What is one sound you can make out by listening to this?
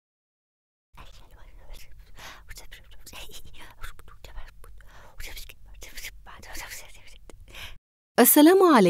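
A girl whispers softly close by.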